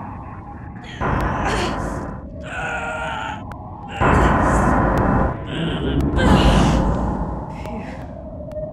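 A heavy metal door grinds and rumbles as it is pushed up.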